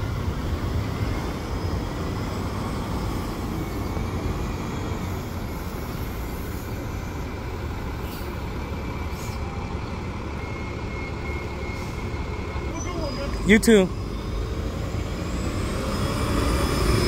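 A bus engine rumbles as it idles and pulls away nearby.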